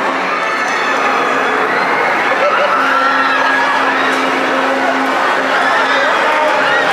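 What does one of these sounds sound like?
A crowd of young riders screams on a swinging ride.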